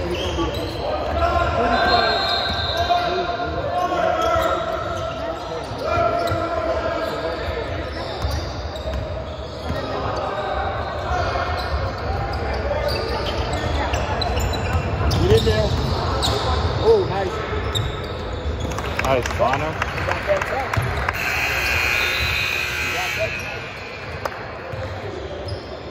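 Players and onlookers call out and chatter in the echoing hall.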